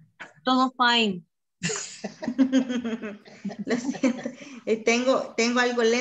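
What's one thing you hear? Women laugh over an online call.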